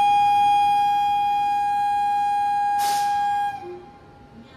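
A locomotive horn blares loudly and steadily, then stops.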